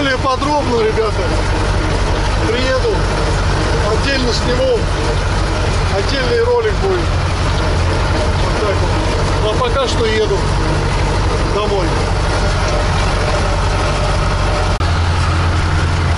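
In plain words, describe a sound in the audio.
A tractor cab rattles over a rough road.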